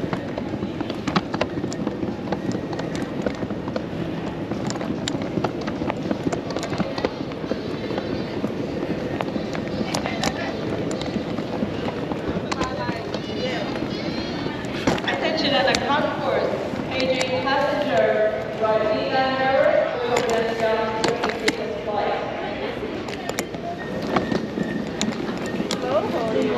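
A crowd murmurs in the distance in a large echoing hall.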